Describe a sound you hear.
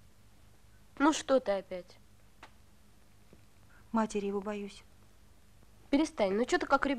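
A woman speaks in reply.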